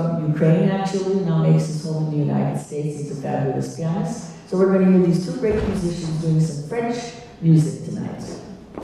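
An elderly woman speaks through a microphone.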